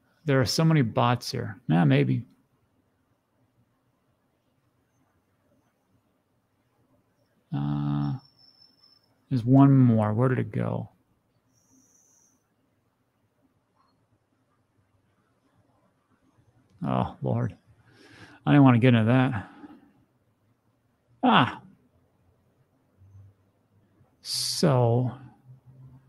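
A middle-aged man speaks calmly into a close microphone, in short bursts with long pauses.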